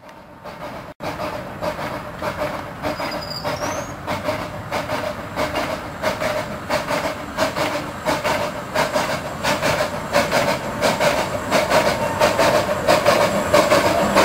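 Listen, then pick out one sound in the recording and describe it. A steam locomotive chuffs rhythmically, growing louder as it approaches.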